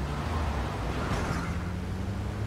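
A vehicle crashes into a truck with a thud.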